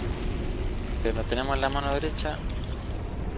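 Heavy metal weapons clash and ring.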